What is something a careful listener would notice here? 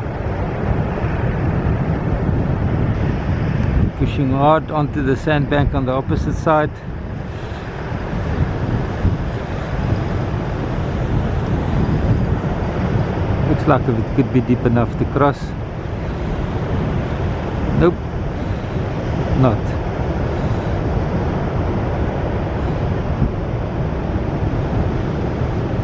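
Waves break and wash steadily onto a shore.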